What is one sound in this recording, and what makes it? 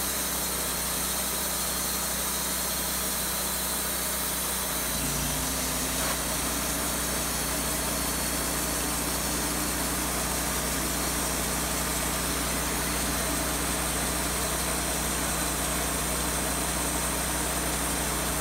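A sawmill engine runs with a steady loud drone.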